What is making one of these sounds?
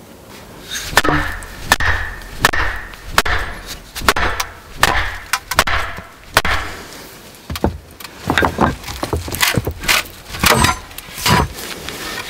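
A wooden mallet knocks sharply on a metal blade, again and again.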